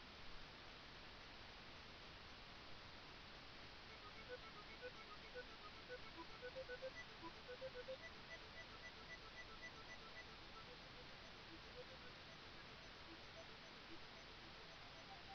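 Retro video game gunfire pops rapidly.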